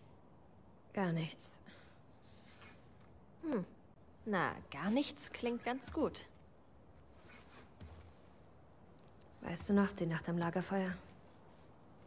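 A young woman speaks softly and briefly.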